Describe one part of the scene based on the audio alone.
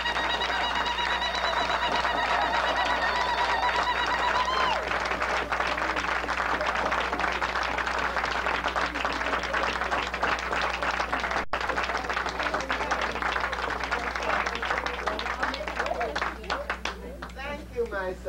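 A crowd claps hands quickly and steadily.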